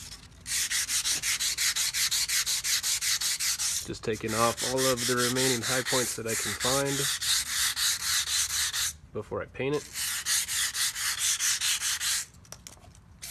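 Sandpaper scrapes back and forth over a metal pipe in quick, rhythmic strokes.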